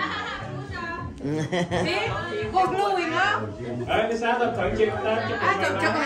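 Women laugh together.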